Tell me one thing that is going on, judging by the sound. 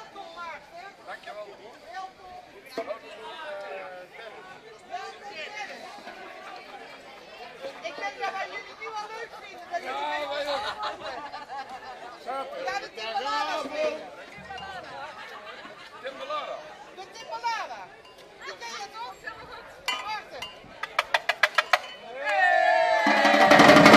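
A group of men and women chat and laugh nearby outdoors.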